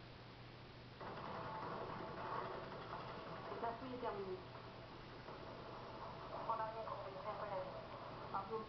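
A woman speaks through a television loudspeaker.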